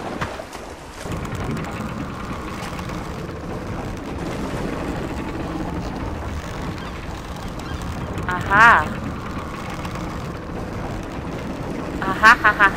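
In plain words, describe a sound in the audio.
A large wooden wheel creaks and rumbles as it turns.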